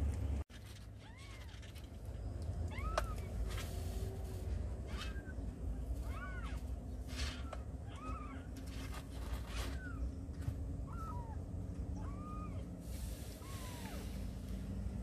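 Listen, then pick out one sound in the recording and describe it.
Kittens mew in high, short cries.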